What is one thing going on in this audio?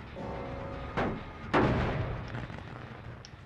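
A metal machine clanks and bangs as it is struck.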